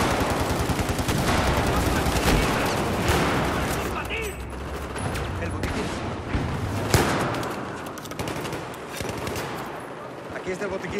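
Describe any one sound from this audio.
Rapid gunfire rattles loudly in an echoing space.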